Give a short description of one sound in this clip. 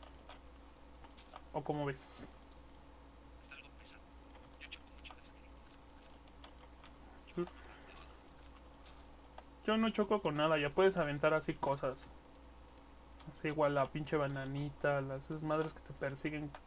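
Blocks of earth and stone crunch softly as they are dug out and set down.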